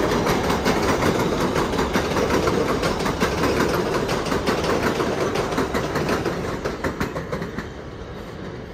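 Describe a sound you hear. A subway train rumbles past close by, its wheels clattering rhythmically over the rail joints, then fades into the distance.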